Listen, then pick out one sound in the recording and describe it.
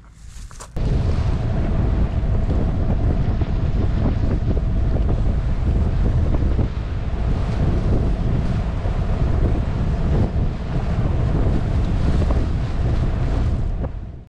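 Water splashes against a sailing boat's hull.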